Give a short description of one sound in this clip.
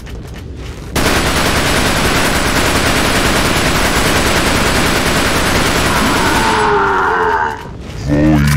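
A submachine gun fires rapid, continuous bursts.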